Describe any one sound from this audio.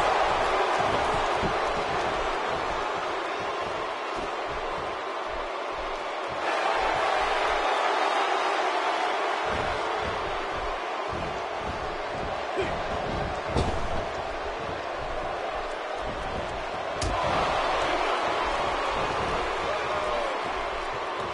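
A large crowd cheers and roars steadily, swelling loud at times.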